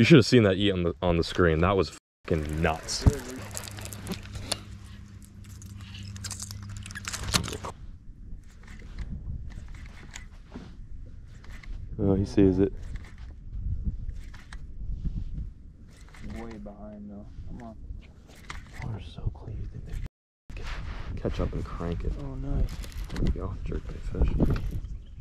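A fishing reel whirs as its handle is cranked.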